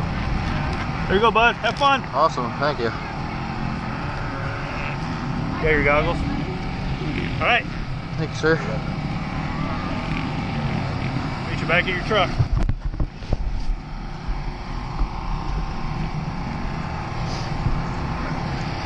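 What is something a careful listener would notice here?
A dirt bike engine idles close by with a low rumble.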